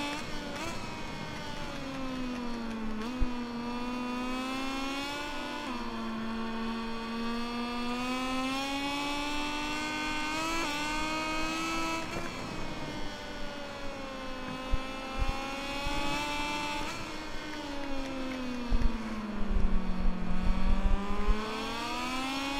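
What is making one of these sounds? A racing motorcycle engine whines loudly, rising and falling in pitch as it shifts gears.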